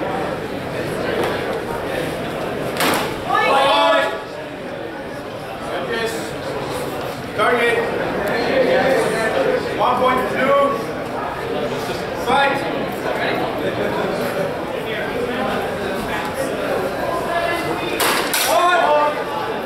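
Wooden practice swords clack together sharply.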